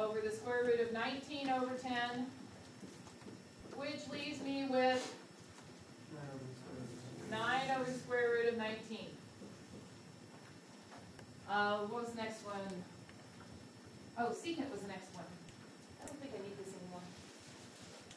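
A woman speaks clearly and calmly nearby.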